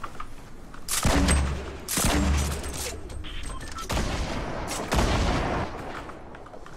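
Loud game blasts boom in bursts.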